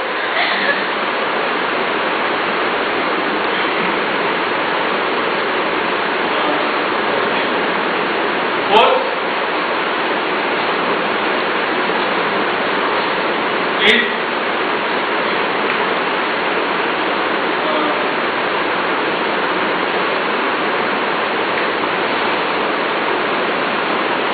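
A man speaks with animation in a room, a little way off.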